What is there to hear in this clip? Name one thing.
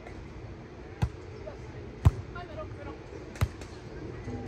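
A ball is struck with sharp slaps of the hands.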